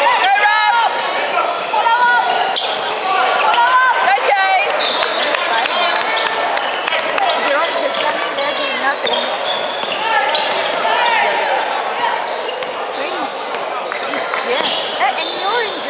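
A crowd of young men and women chatter and shout around the court.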